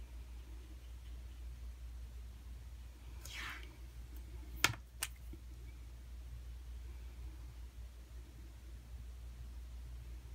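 A marker tip rubs softly on paper.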